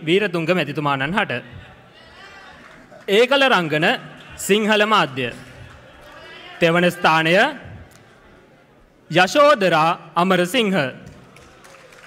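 A young man speaks through a microphone and loudspeakers in short, lively phrases.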